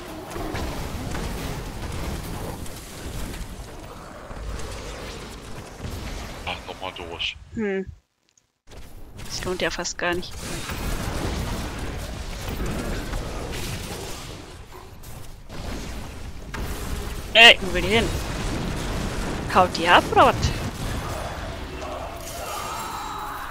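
A young woman speaks into a microphone now and then.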